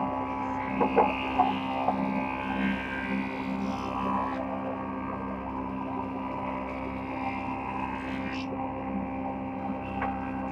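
A woodworking planer machine hums and whirs steadily.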